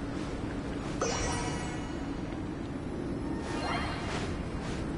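A magical chime rings out with a bright shimmer.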